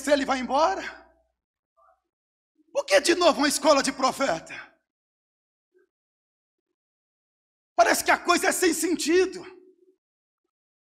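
A man speaks with emphasis into a microphone, in short bursts with pauses.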